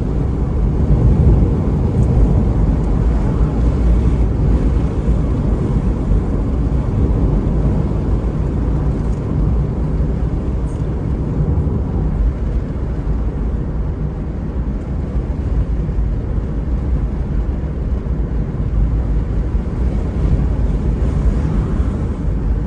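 A car's engine hums steadily, heard from inside the car.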